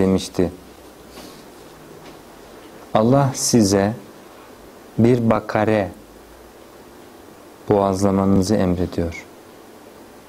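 A young man speaks in slow, measured phrases close to a microphone, with long pauses between them.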